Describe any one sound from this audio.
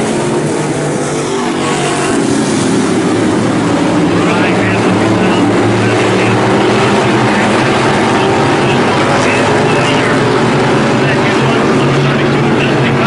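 Race car engines roar loudly outdoors.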